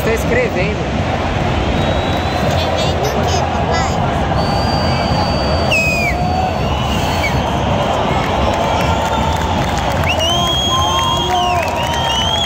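A huge crowd cheers and roars loudly in a vast stadium.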